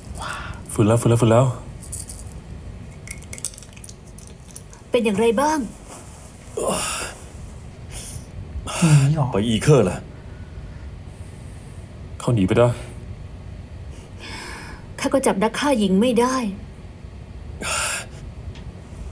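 A man speaks in short, tense lines.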